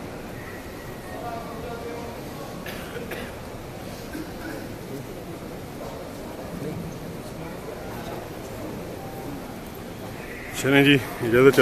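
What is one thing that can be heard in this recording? A crowd murmurs softly in a large echoing space.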